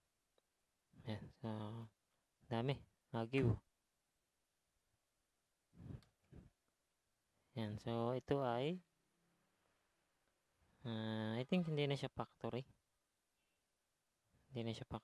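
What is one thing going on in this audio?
A man talks calmly, close to a microphone, in short bursts.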